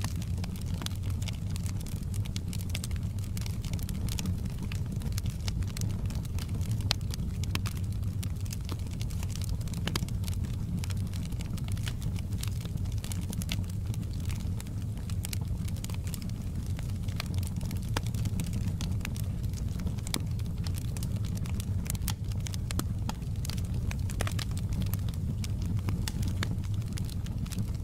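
Burning logs crackle and pop with sharp snaps.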